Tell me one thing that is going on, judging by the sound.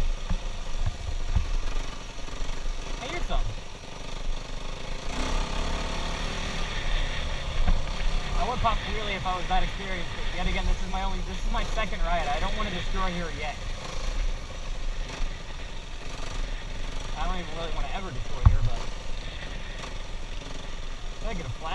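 A dirt bike engine drones and revs up close.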